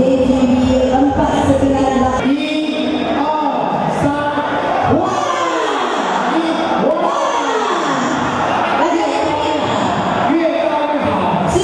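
A group of men shout and cheer together.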